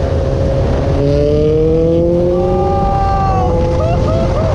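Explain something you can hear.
A motorcycle engine revs higher as it speeds up.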